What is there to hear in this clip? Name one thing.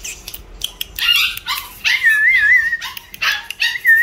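A puppy whines with high, wavering squeaks.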